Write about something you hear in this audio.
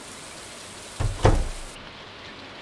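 A door opens and shuts with a thud.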